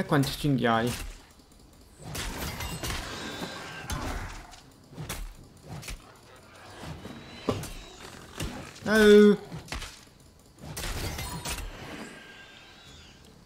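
Game combat effects whoosh and clash in bursts.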